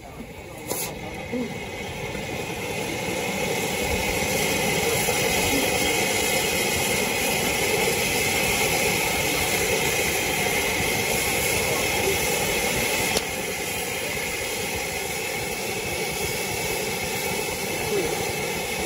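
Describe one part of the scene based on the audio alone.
A firework fountain hisses and crackles steadily.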